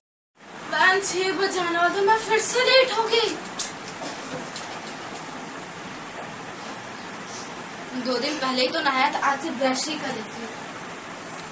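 A young girl sings nearby.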